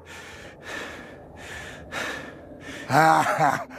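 A man groans wearily.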